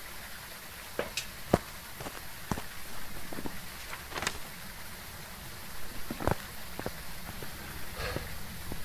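Footsteps tread slowly on a hard path.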